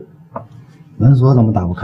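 A man speaks quietly and close by.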